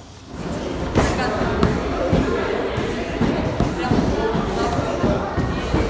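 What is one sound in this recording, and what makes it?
Fists thump against padded strike shields.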